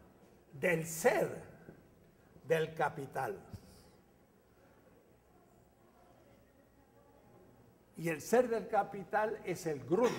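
An elderly man speaks with animation.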